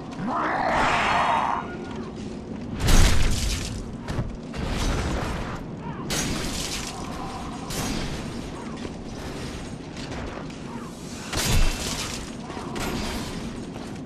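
Swords clash and strike armour in heavy blows.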